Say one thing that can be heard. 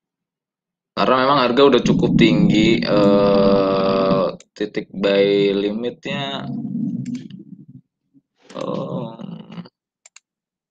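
A young man speaks with animation through a microphone.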